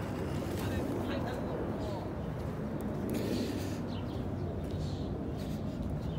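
A young man speaks quietly close by.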